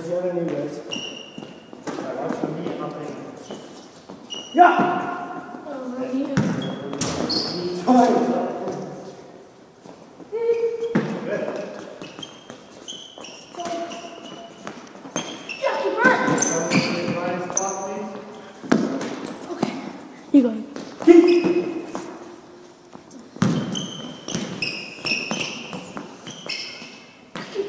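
Sneakers squeak on the hard floor.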